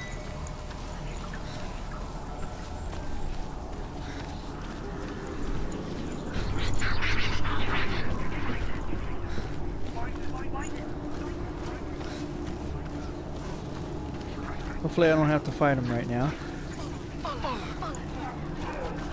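Footsteps run over soft forest ground.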